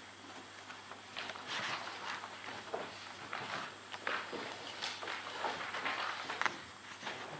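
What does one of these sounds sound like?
A man speaks quietly in the distance.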